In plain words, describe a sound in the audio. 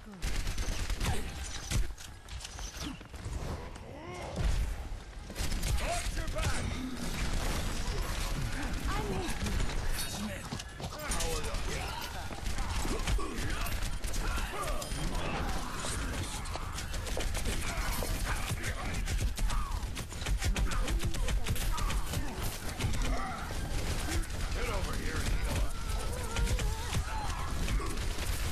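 Video game gunfire crackles in rapid bursts.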